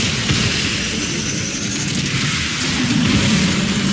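Explosions burst with loud rushing noise.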